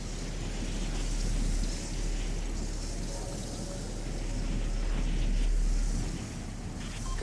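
Wind rushes past as a game character glides down through the air.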